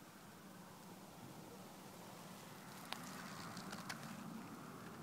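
A bee buzzes softly close by.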